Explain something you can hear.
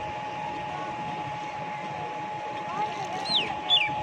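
Liquid pours and splashes into a plastic tank.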